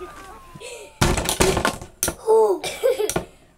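Spinning tops clash and rattle against each other in an arena.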